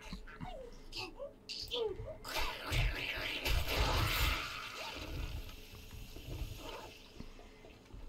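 A zombie groans and snarls.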